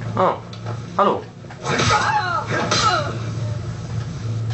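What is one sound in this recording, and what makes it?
Flames roar and crackle in a game fight through a television speaker.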